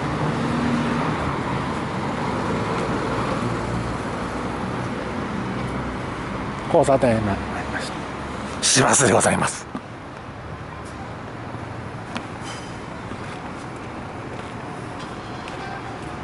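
Traffic rumbles along a street nearby.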